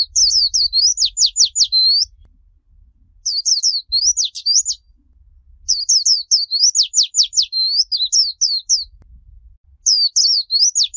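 A small bird sings a quick, high, chirping song in bursts close by.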